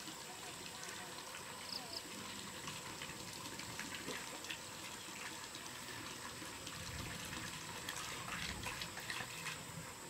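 Faint knocks and clicks come from someone working nearby.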